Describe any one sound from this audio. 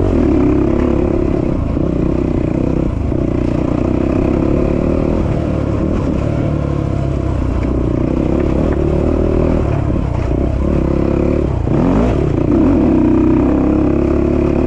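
A dirt bike engine drones steadily, rising and falling in pitch.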